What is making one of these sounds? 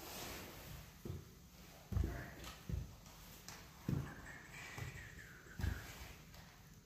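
Heavy footsteps thud on a wooden floor.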